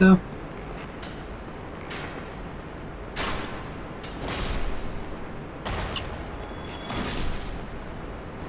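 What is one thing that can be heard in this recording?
Sword slashes and impacts clang in a game.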